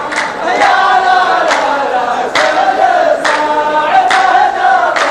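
A group of men clap their hands in a slow, steady rhythm.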